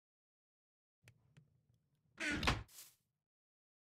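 A wooden chest lid thuds shut.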